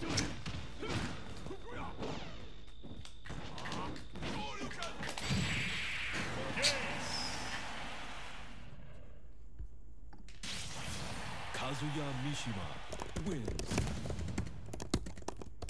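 Game hits and blasts crash in quick bursts.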